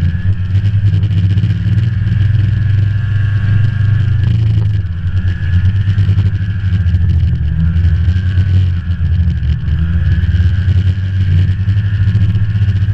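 A snowmobile engine drones, heard from the rider's seat, while cruising along a trail.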